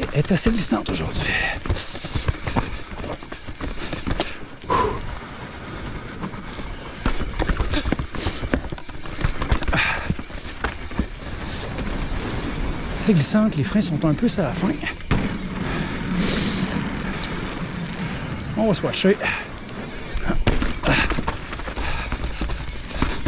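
Bicycle tyres crunch and bump over a rocky dirt trail.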